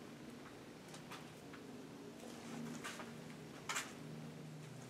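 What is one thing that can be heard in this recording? A large wooden frame bumps and scrapes as it is lifted.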